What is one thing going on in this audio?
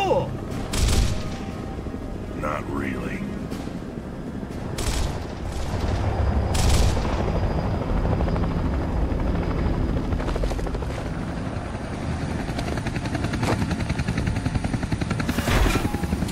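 A helicopter's rotor thumps steadily with a deep engine roar.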